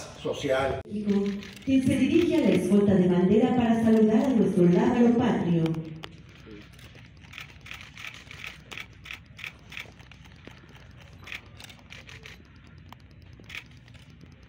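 Soldiers stamp their boots on pavement.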